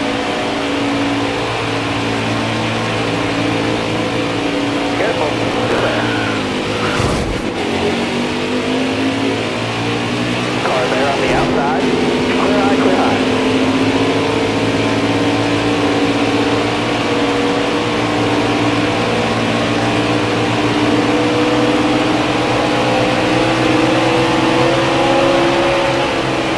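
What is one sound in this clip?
A racing engine roars steadily at high speed.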